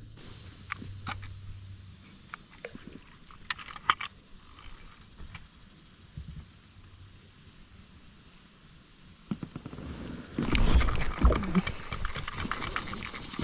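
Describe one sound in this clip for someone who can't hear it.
A fishing reel clicks and whirs as its handle is turned.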